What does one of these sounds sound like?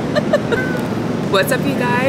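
A woman calls out a greeting from a short distance.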